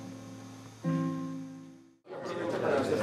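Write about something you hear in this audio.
A classical guitar plays a chord that rings out and fades.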